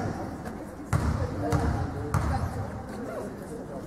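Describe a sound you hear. A basketball bounces on a wooden floor in an echoing hall.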